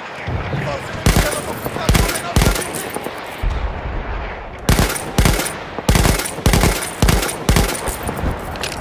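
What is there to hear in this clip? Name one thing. A machine gun fires in sharp bursts.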